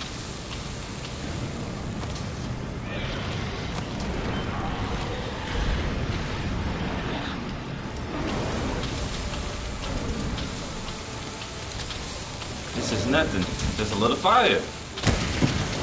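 Heavy blows strike with sharp thuds.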